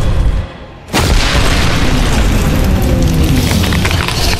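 Stone walls crack and crumble with heavy rumbling.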